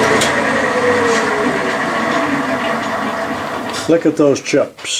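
A metal lathe spins and cuts with a steady whir, its pitch slowly falling as it winds down.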